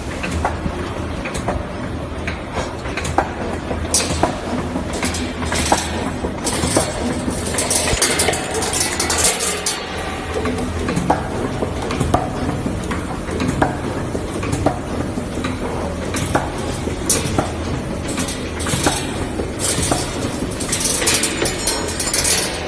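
A wire-bending machine hums and whirs steadily.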